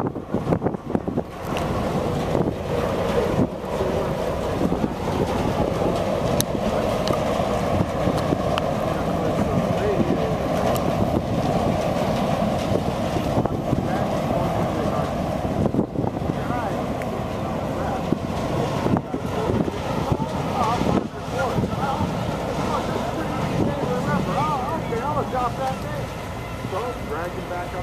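A large ship's engine rumbles low and steady as it passes close by.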